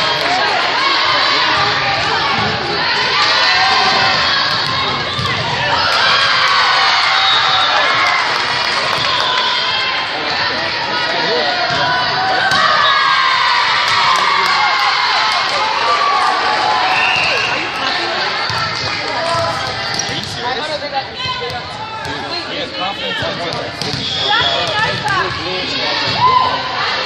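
Young women players call out to each other on the court.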